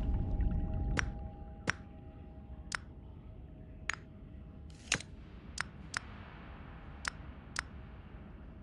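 Short menu clicks sound one after another.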